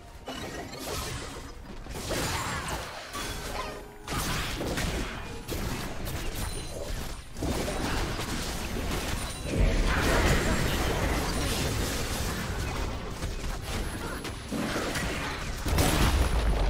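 Spell effects burst and crackle in a fast game fight.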